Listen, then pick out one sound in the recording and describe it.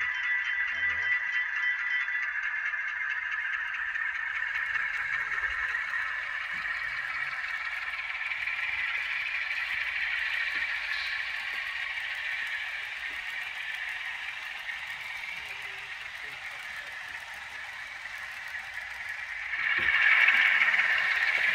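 Model train wheels click and rumble over the rail joints.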